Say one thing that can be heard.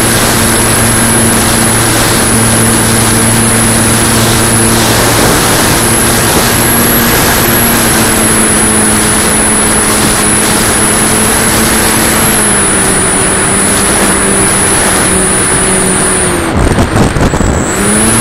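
A small electric motor whines steadily as a propeller spins.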